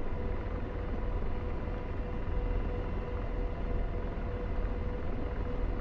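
A cockpit warning tone beeps over and over.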